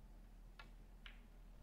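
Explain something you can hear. Snooker balls clack together.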